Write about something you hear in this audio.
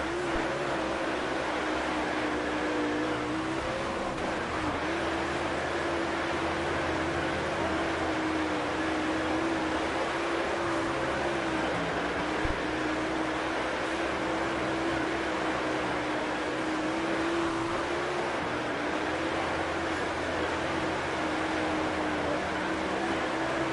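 A race car engine roars steadily at high revs.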